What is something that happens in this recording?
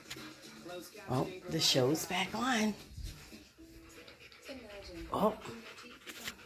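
A dog howls and grumbles in long, bending moans close by.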